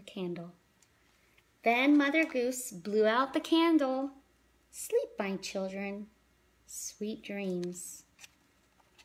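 A woman reads aloud in a lively voice close by.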